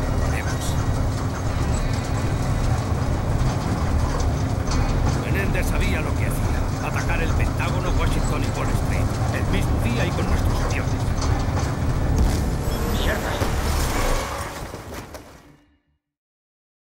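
A heavy vehicle engine rumbles steadily, then fades out.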